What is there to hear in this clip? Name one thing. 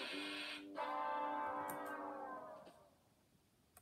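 A computer game plays a bright electronic tune that slides down in pitch.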